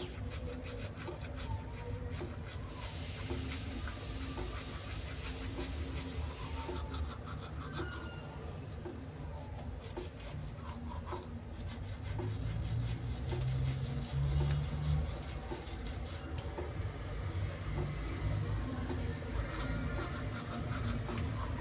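A toothbrush scrubs wetly against teeth, close up.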